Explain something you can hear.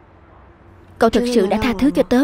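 A young woman speaks close by in a questioning tone.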